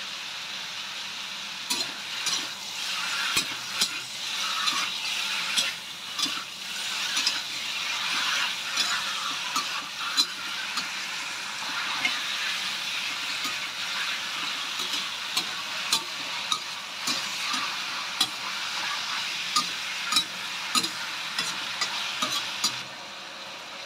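Food sizzles steadily in a hot wok.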